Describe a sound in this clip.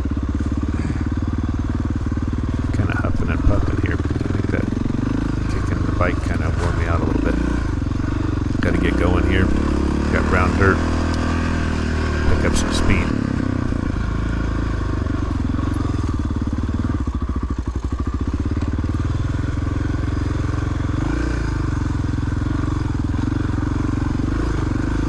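A dirt bike engine roars steadily up close.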